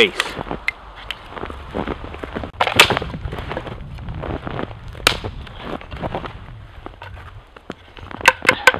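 Snow crunches underfoot.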